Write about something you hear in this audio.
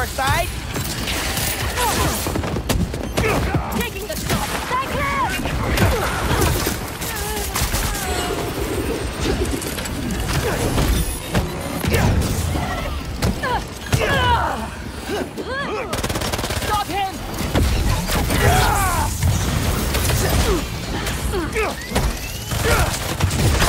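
Punches and blows land with sharp thuds.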